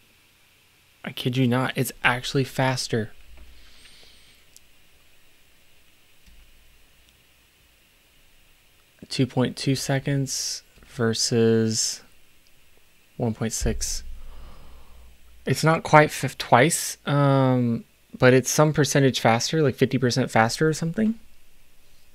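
A middle-aged man speaks calmly and closely into a microphone, with pauses.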